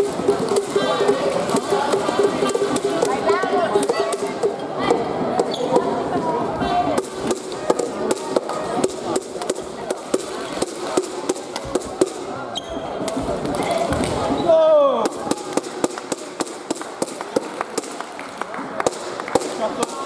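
Shuttlecocks are struck with rackets in quick sharp pops.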